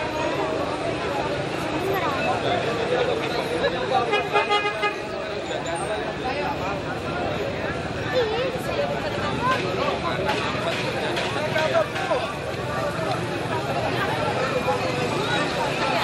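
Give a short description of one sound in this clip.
A crowd of men and women talk over one another close by, outdoors.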